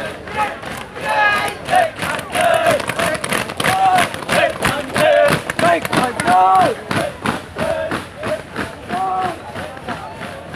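A group of young men chant loudly in unison while marching.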